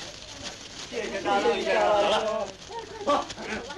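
A crowd of men shouts as people run about.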